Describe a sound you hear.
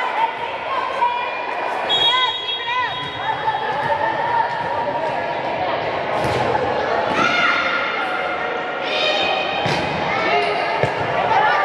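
Shoes squeak sharply on a gym floor in a large echoing hall.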